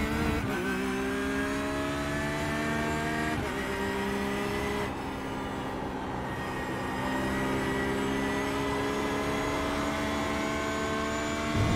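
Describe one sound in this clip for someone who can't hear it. A racing car engine roars at high revs, climbing steadily in pitch.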